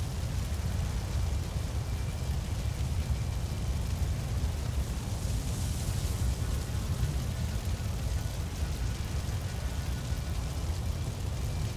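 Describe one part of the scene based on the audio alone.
Water splashes as a figure wades slowly through a pond.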